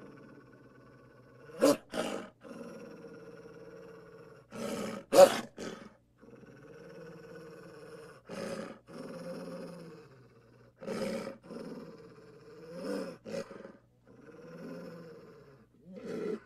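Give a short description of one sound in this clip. A wolf growls and snarls close by in bursts.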